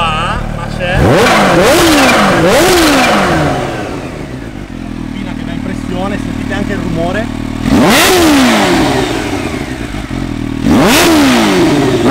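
A motorcycle engine revs sharply and then falls back to idle.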